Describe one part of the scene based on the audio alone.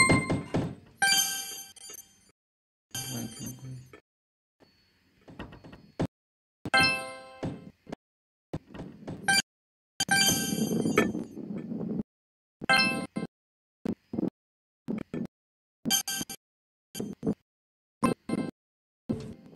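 Bright electronic chimes ring out in short bursts.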